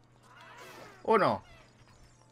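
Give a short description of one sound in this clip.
A creature lets out a shrill screech.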